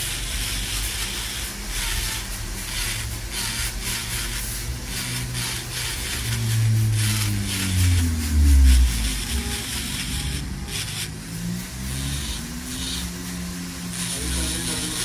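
A small electric nail drill whirs and grinds against a toenail.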